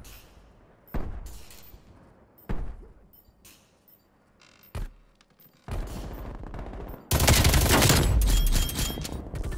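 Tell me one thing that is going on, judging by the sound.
Gunshots crack loudly, one at a time.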